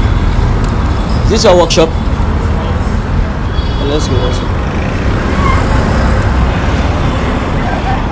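Traffic hums along a road nearby.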